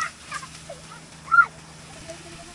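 A young girl shouts excitedly.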